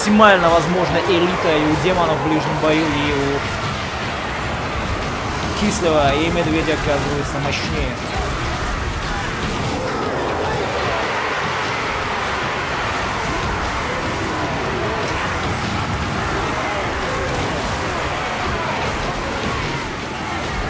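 A large army tramps and clatters across snowy ground.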